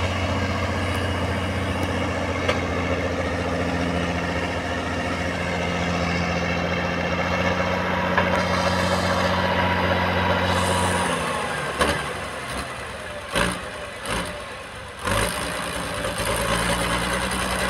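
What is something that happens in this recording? A harrow rattles and churns through clods of soil.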